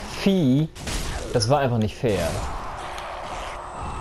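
A sword swings and strikes.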